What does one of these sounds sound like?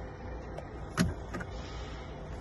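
Switches click as a hand presses them.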